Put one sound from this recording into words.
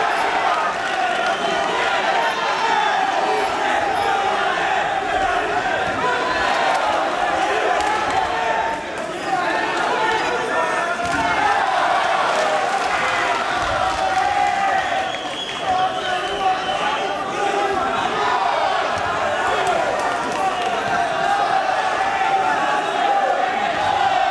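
Gloved punches thud against bodies and gloves.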